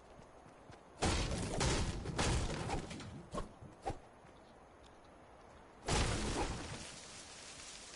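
Pickaxe blows crack and thud against wood in quick bursts.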